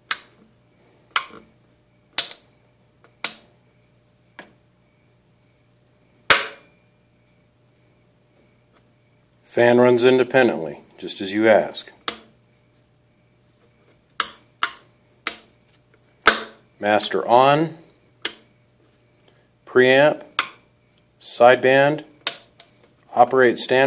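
Toggle switches click sharply.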